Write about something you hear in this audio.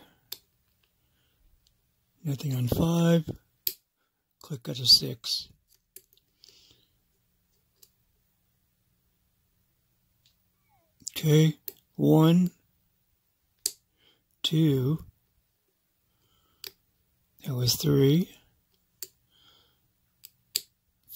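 A small metal tool scrapes and clicks against metal.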